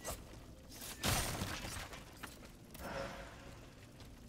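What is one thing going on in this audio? Wooden crates smash and splinter.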